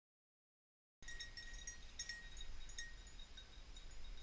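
A dog runs through dry grass.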